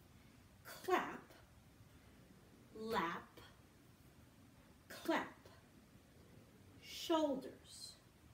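A young girl exclaims loudly in short bursts, with pauses between.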